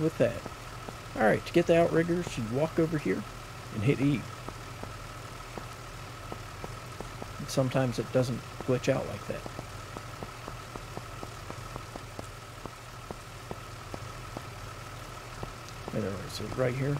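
A large truck engine idles with a low steady rumble.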